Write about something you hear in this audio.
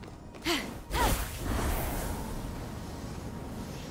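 Wind rushes steadily during a glide through the air.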